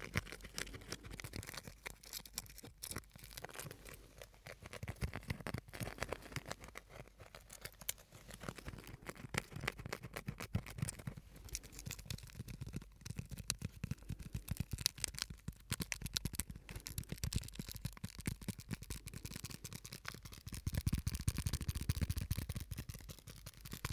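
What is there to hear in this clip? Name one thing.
Fingers tap and crinkle a small plastic object close to a microphone, with crisp rapid clicks.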